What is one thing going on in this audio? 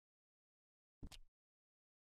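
A short click sounds from a menu.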